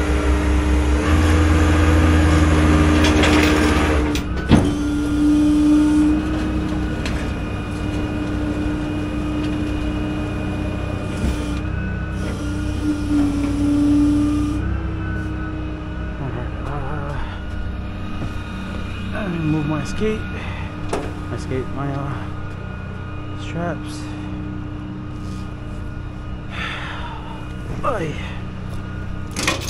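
A truck engine hums steadily close by.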